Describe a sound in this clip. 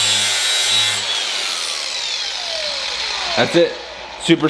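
An angle grinder spins down after being switched off.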